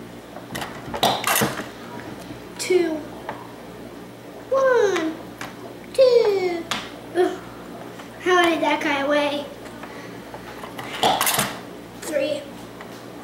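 A teenage boy talks and laughs close by.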